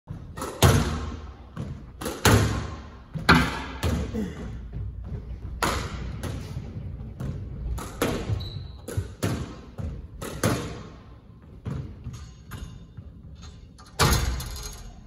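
A squash ball cracks off a racket and smacks the front wall in an echoing court.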